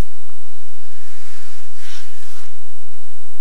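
Snow crunches softly under a man's body.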